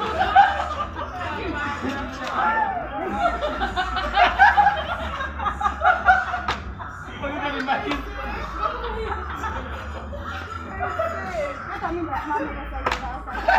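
Several young men and women talk and laugh together outdoors.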